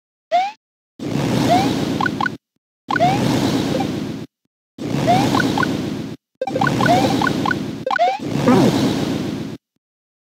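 Fireballs whoosh in short bursts in a video game.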